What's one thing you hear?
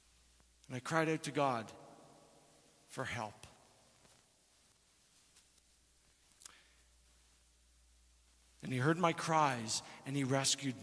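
A man speaks slowly and deliberately through a microphone in a large echoing hall.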